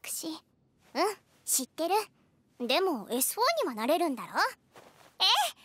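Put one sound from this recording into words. A young boy speaks in a high, playful voice.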